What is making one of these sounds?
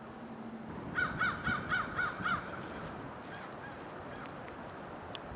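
A bird caws several times in quick succession, then more faintly.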